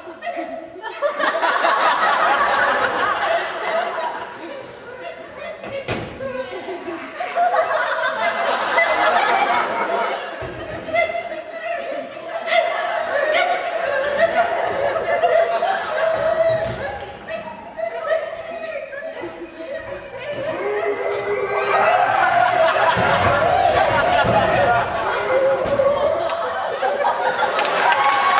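A young man sings into a microphone, heard through loudspeakers in a large hall.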